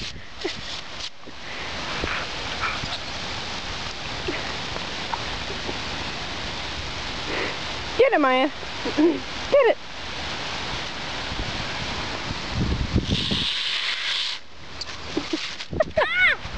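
Water hisses steadily from a hose spray.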